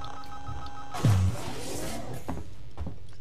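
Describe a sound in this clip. A heavy metal door slides open with a deep thud.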